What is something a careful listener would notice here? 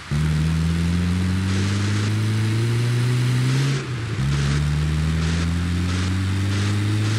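A van engine drones steadily, rising in pitch as it speeds up, with a brief drop as it changes gear.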